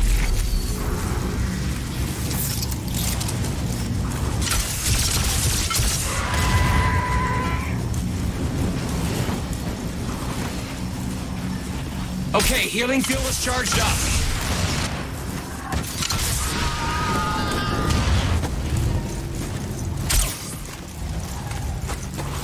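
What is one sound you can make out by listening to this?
Footsteps crunch over loose gravel.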